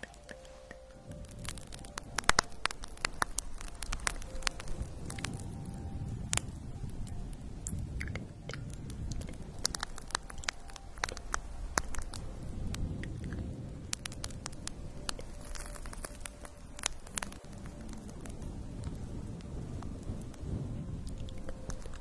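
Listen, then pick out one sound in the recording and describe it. Fingernails scratch and rub over a fluffy microphone cover, close up.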